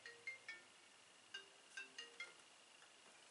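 Phone keypad tones beep in short bursts.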